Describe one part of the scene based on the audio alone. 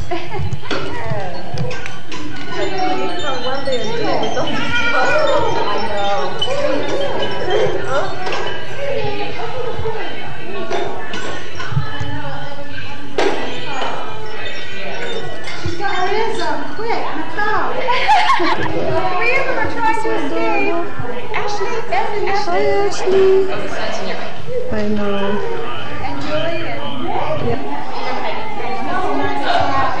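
Adults and small children chatter nearby in a room.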